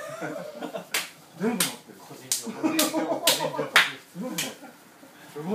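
A man claps his hands several times.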